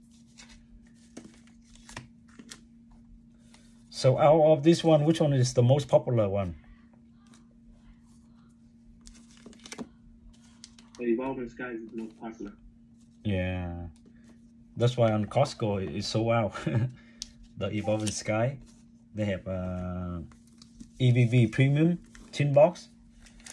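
Foil card packets crinkle and tap softly as a hand handles and sets them down.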